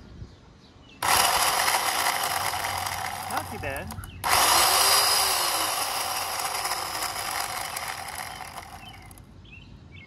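An electric chainsaw whirs loudly at high speed, stops briefly, then whirs again.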